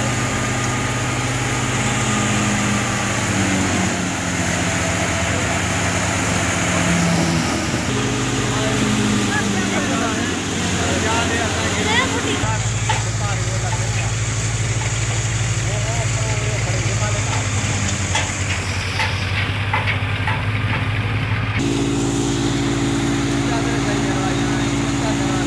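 A threshing machine runs with a loud, steady drone.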